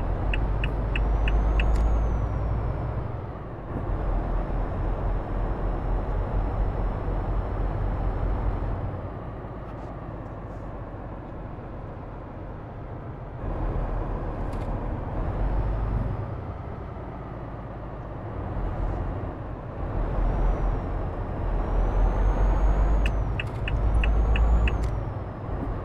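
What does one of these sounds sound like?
A turn signal ticks in quick, even clicks.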